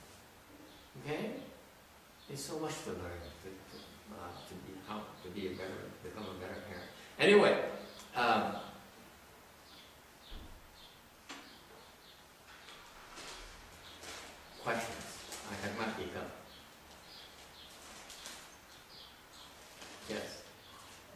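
An elderly man speaks calmly and slowly into a nearby microphone, with pauses.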